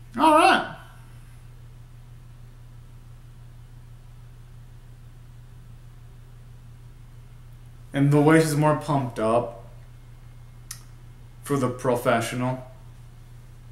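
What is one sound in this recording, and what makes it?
A young man sings in short bursts close to the microphone.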